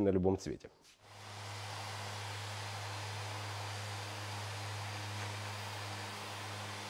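An electric orbital sander hums steadily as it sands a car roof.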